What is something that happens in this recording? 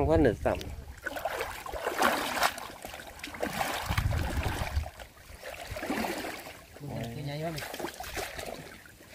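A net splashes and water pours through it.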